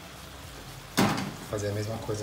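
A metal pan clanks down onto a stove.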